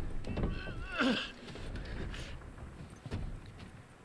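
A body drops and thumps onto wooden boards.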